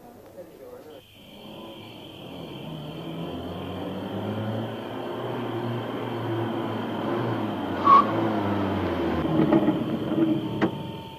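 A car engine hums as a car drives closer and grows louder.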